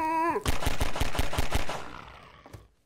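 Rapid gunshots fire in quick succession.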